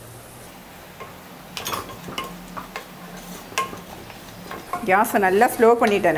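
A spoon scrapes and stirs inside a metal pot.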